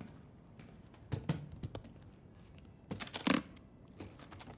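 A heavy case thuds down onto a table.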